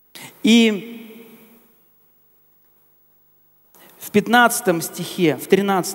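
A middle-aged man speaks through a microphone in an echoing hall.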